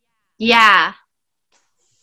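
A young woman screams loudly over an online call.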